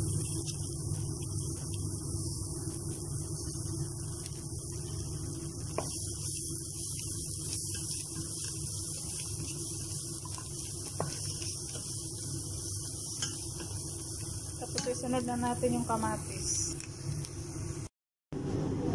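Food sizzles and fries in a hot pan.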